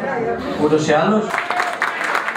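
A middle-aged man speaks into a microphone over loudspeakers.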